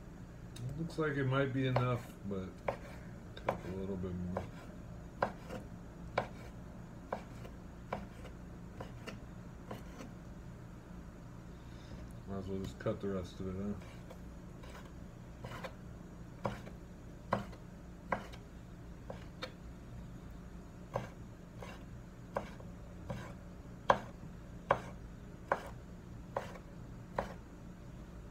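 A knife chops through meat and knocks on a wooden cutting board.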